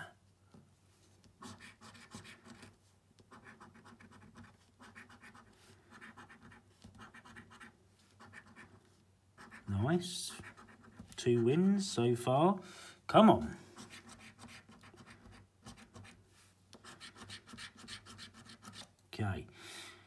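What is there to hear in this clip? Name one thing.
A coin scratches repeatedly across a card.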